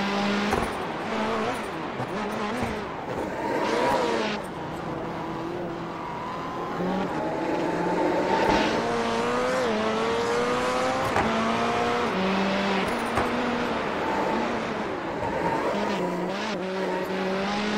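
A rallycross car engine revs hard and shifts through its gears.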